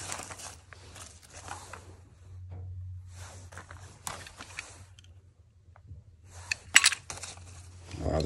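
Small plastic objects clatter and knock together.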